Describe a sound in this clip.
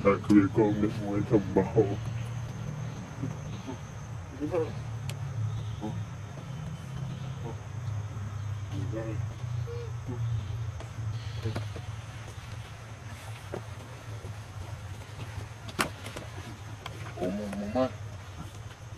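A young macaque squeals in high, wavering cries.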